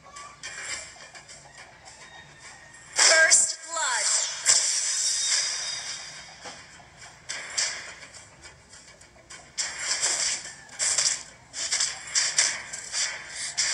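Game sound effects whoosh and chime in quick bursts.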